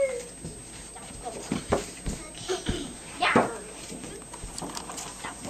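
Young girls shout and squeal playfully nearby.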